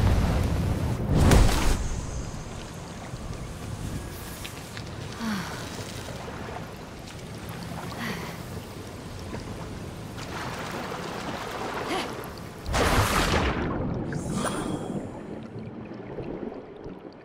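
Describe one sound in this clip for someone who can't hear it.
Wind howls steadily through the whole stretch.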